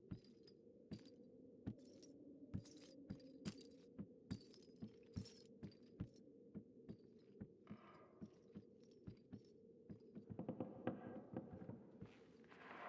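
Soft footsteps tread slowly on a wooden floor.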